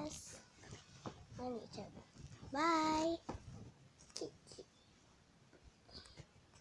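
A young girl speaks close by, with an animated, sing-song voice.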